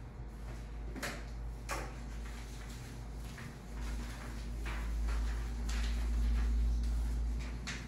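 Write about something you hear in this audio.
A felt eraser rubs across a chalkboard in short swipes.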